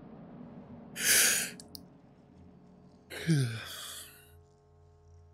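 A man laughs loudly into a microphone, close by.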